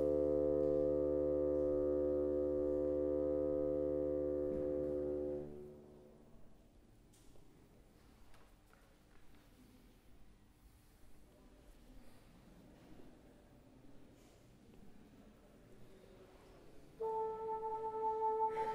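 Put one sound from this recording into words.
A bassoon holds long steady notes that ring out in a large echoing hall.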